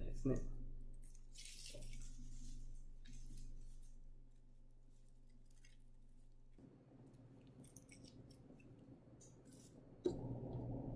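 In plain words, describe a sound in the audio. Dry leaves rustle and crackle as a plant is handled.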